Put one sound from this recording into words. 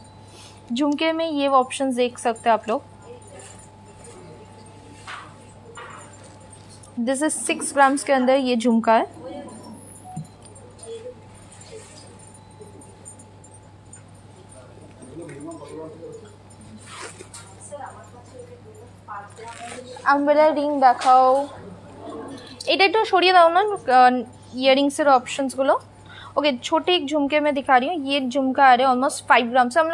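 Small metal earrings jingle softly in a hand.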